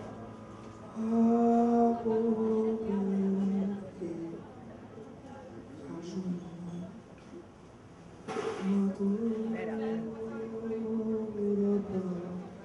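A harmonica plays a slow, wavering melody.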